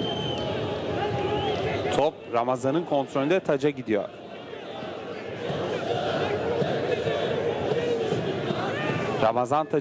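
A large stadium crowd chants and roars outdoors.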